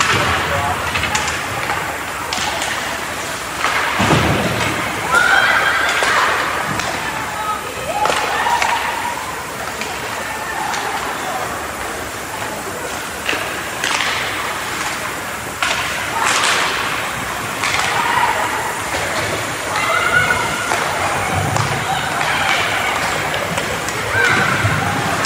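Skates scrape and hiss across the ice in a large echoing rink.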